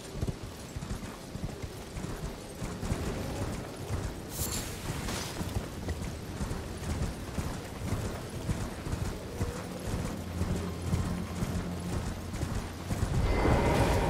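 A horse gallops over grass with quick, steady hoofbeats.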